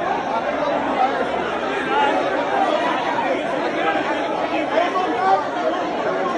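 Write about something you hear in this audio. A crowd of men and women talks loudly all at once, close by.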